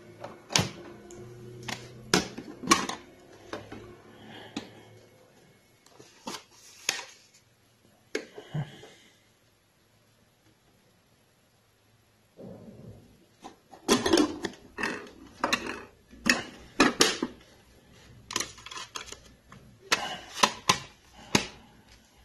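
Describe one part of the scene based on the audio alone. A plastic case clicks and clatters as hands handle it.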